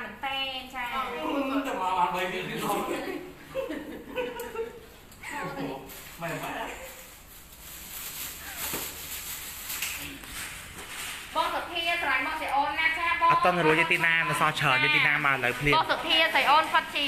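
Several young women talk and chatter close by.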